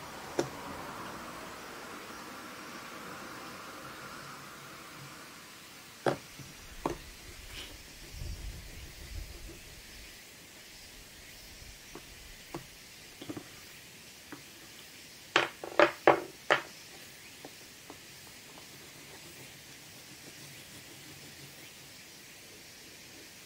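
Pastel crayons scrape and rub across paper.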